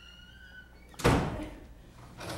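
A door bangs shut.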